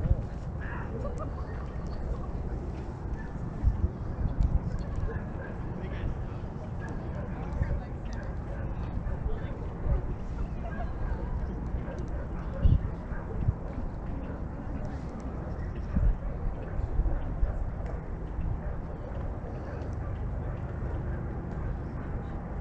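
Wind blows outdoors and rumbles against the microphone.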